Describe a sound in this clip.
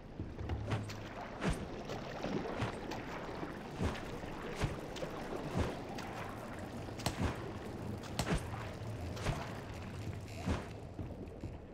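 Footsteps splash through shallow water at a steady walking pace.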